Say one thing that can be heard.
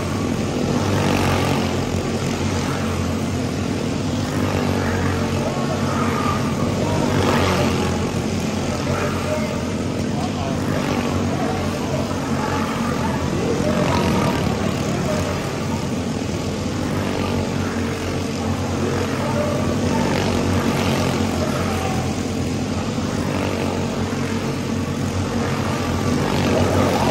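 Small kart engines buzz and whine loudly as they race past close by.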